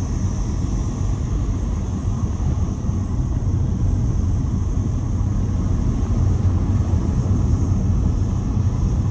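A car drives along a dirt road with a steady low rumble.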